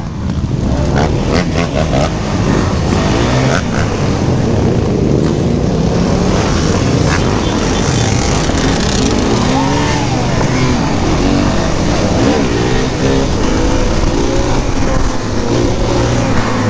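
Wind rushes loudly past the microphone.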